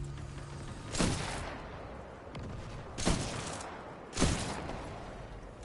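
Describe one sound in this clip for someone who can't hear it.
A rifle fires loud, sharp shots with echoing cracks.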